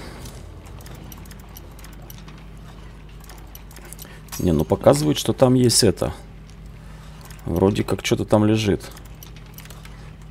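Metal lock picks scrape and click inside a door lock.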